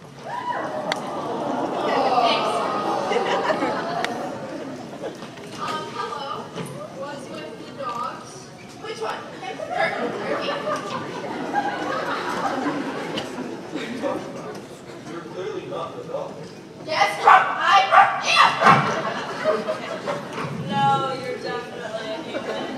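A young woman talks with animation in a large echoing hall.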